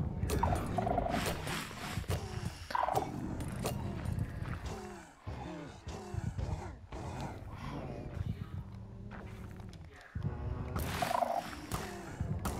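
A monster growls with a deep rumble.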